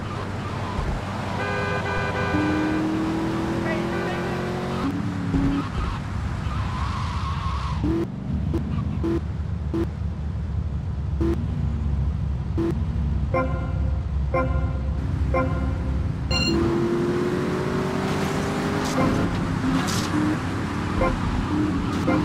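A car engine roars and revs as the car speeds along.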